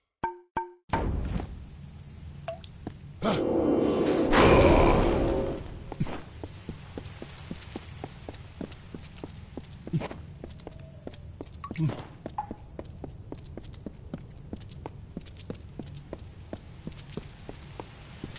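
An armoured figure's footsteps thud on stone.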